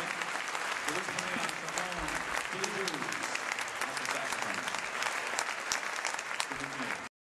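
A drummer plays brisk cymbals.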